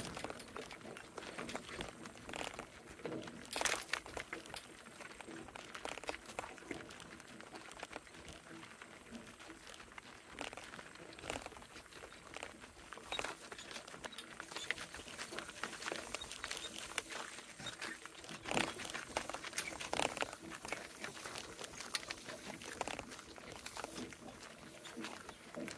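A cart creaks and rattles as it rolls along.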